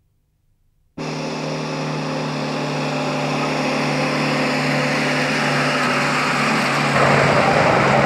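A truck engine rumbles as the truck drives closer.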